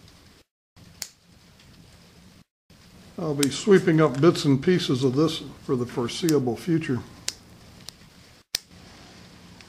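Small cutters snip through plastic with sharp clicks.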